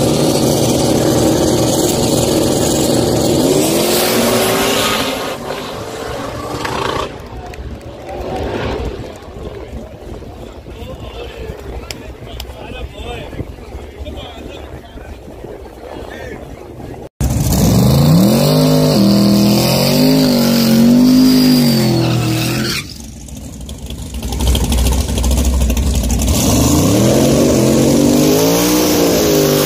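Race car engines rumble and rev loudly.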